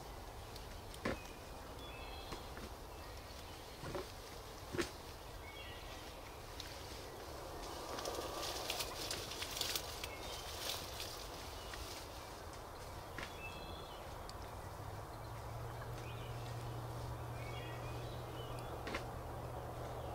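Wild turkeys gobble loudly nearby outdoors.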